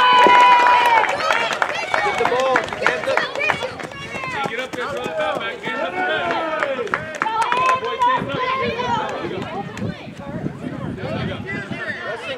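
Children shout and cheer excitedly outdoors.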